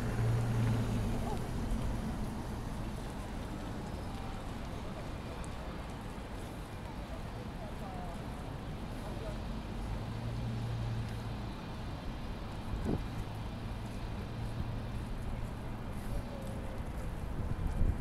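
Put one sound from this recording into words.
A crowd of people murmurs and talks in a busy street outdoors.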